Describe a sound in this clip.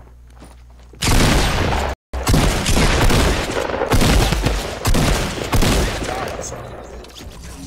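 Loud gunshots fire in quick bursts.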